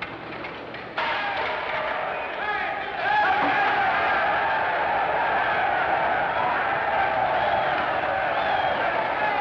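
A crowd of men shouts and roars in a brawl.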